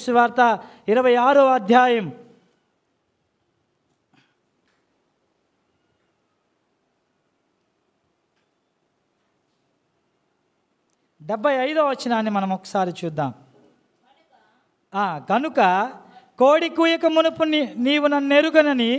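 A young man sings into a microphone, pausing between phrases.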